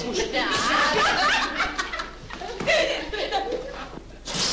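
Several young people talk over each other at close range.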